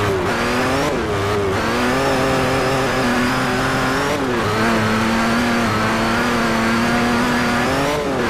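A racing car engine revs hard, dropping in pitch at each gear change.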